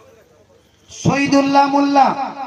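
A man chants in a long, drawn-out melodic call through a microphone.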